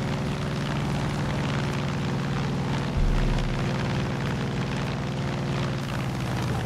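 Wind rushes past a small plane.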